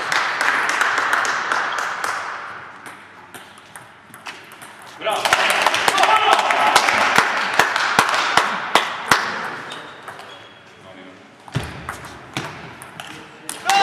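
A table tennis ball clicks back and forth off paddles and the table in an echoing hall.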